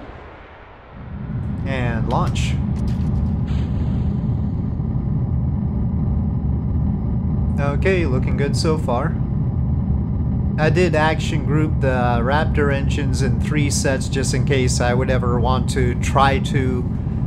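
A rocket engine roars steadily with a deep rumble.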